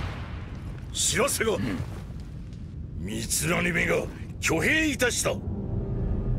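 A man speaks forcefully and gruffly.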